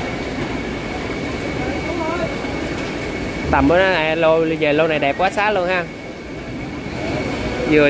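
Water splashes as a man stirs a tank with his hands.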